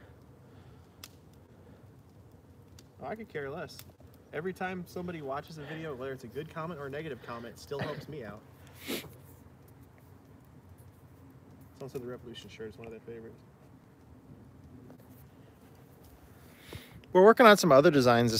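A wood fire crackles softly.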